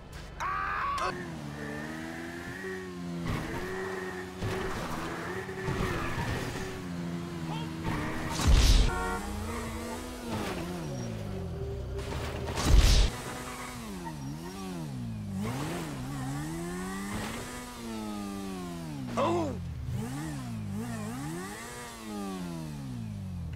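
A motorcycle engine revs up and down, rising and falling in pitch.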